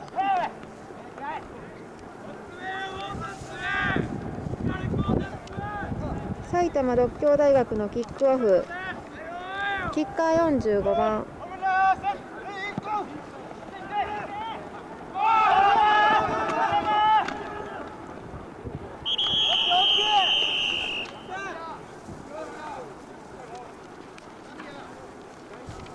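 Several young men shout and call out excitedly nearby, outdoors.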